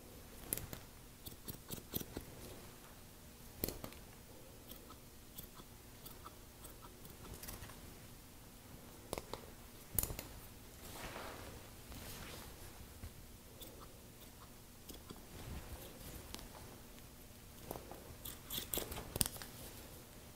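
Scissors snip hair close by, in short crisp clicks.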